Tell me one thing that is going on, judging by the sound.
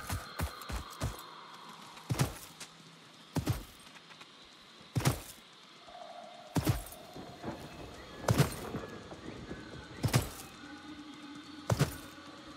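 Footsteps thud slowly and evenly on soft ground.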